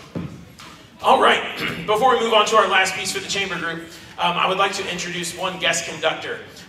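A man speaks with energy into a microphone, heard through loudspeakers in a large echoing hall.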